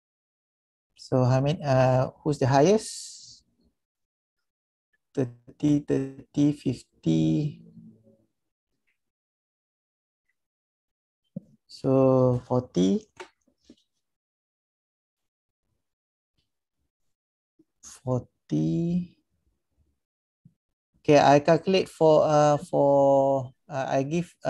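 A man speaks calmly over an online call, in short bursts with pauses.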